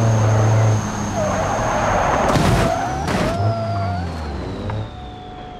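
Tyres squeal as a car slides around a bend.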